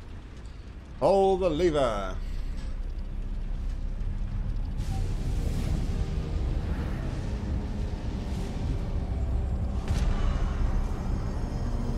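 A low rumbling hum swells.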